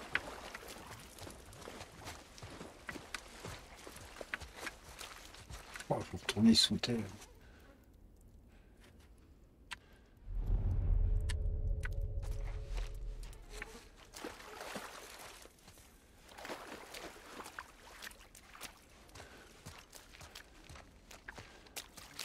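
Footsteps rustle softly through grass and debris.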